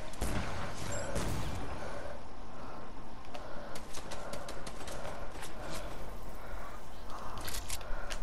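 A glider whooshes through the air.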